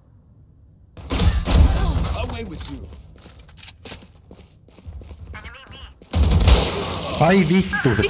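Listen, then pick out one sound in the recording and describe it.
Gunshots fire in loud bursts, close by.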